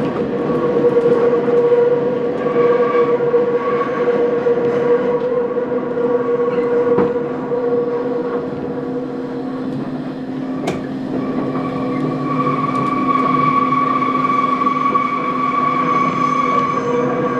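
A train's motor whines with a steady hum.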